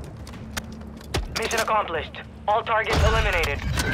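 A rifle magazine clicks as it is swapped in.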